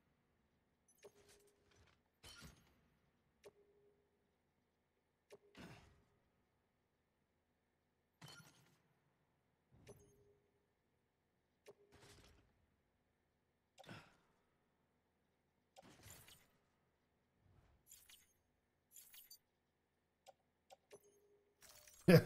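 Short electronic menu beeps sound now and then, each with a soft whoosh.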